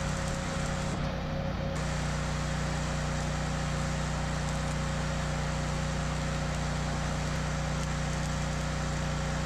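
An arc welder crackles and sizzles steadily close by.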